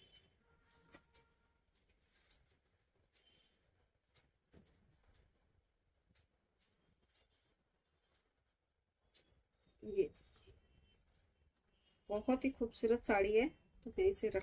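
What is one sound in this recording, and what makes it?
Cloth rustles softly as a scarf is draped and tucked.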